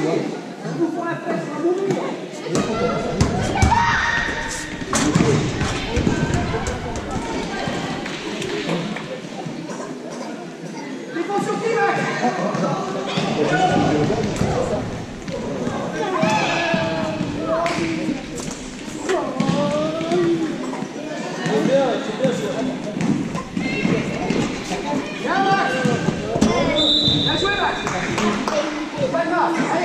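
Children's voices echo loudly through a large hall.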